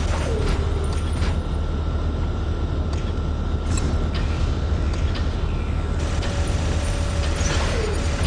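Heavy metal footsteps thud steadily.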